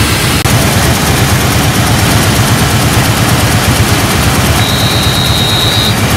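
Water gushes out of pipes and splashes into a river.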